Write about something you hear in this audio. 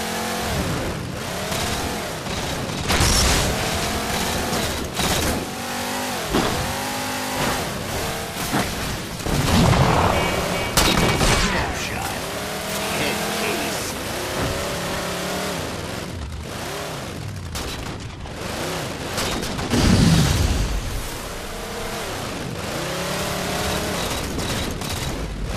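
A vehicle engine drones and revs up and down.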